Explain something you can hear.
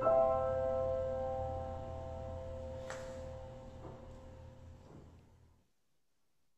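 A piano plays a final chord that slowly rings out.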